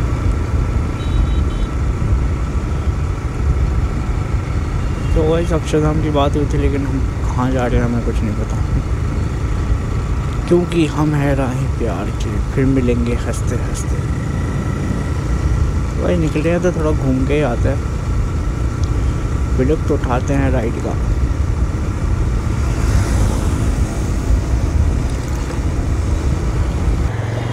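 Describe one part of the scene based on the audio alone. A motorcycle engine hums steadily as the motorcycle rides along.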